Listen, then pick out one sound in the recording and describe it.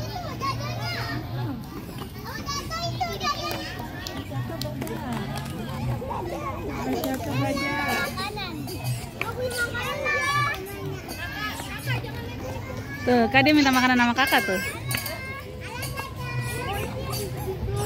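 Children chatter and call out excitedly nearby.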